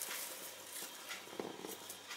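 Leaves rustle softly as they are pushed into a plastic jar.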